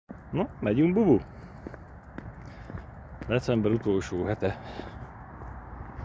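A small dog's paws patter on pavement.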